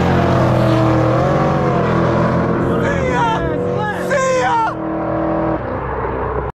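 A car engine rumbles steadily nearby.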